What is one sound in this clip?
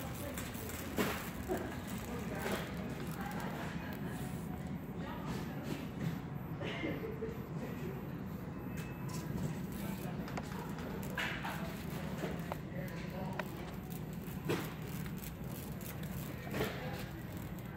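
A metal shopping cart clatters now and then.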